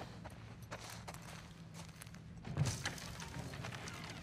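A door bumps and swings open.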